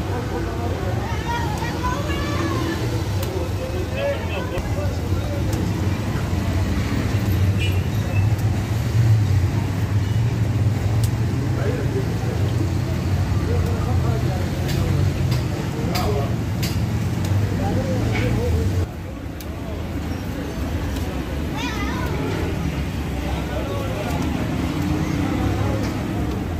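Hot oil sizzles and bubbles steadily in a large pan.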